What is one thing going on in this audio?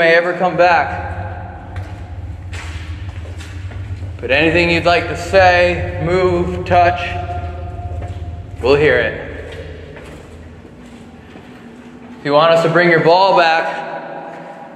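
A man speaks close by with animation, his voice echoing in a tight tunnel.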